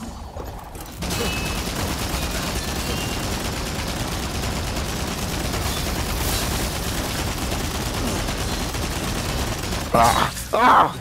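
A hand-cranked gun fires a rapid, steady stream of shots.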